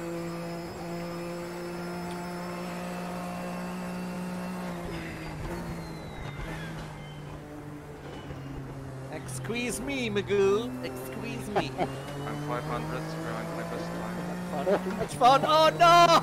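A racing car engine drones steadily, shifting pitch as it slows and speeds up.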